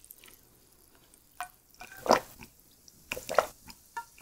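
A young woman gulps a drink close up.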